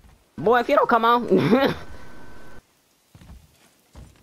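Heavy footsteps thud on creaking wooden planks.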